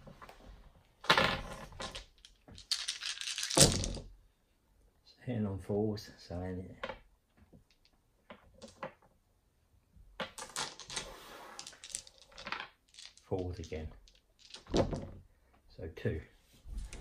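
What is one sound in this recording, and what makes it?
Dice rattle and clatter as they are rolled into a tray.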